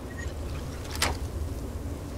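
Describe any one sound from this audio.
A lock snaps open with a sharp click.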